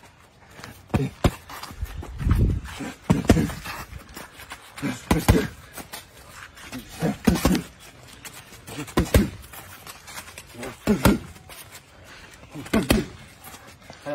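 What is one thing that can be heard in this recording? Boxing gloves thud against punch mitts outdoors.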